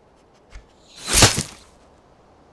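An arrow whooshes and strikes with a sharp thud.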